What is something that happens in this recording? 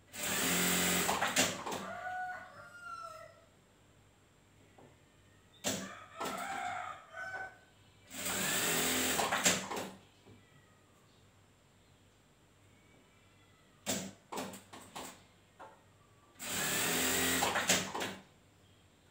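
A sewing machine whirs in short bursts, then stops.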